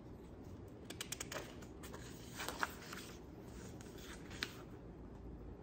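A book page rustles as it turns.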